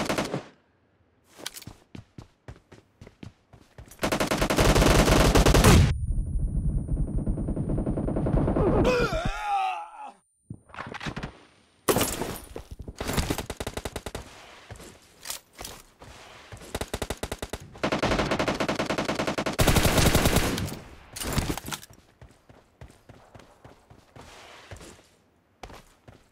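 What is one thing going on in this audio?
Quick footsteps run over grass and gravel.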